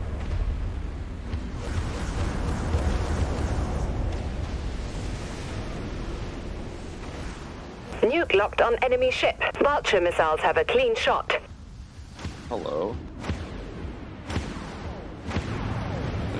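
A spaceship engine rumbles low and steady.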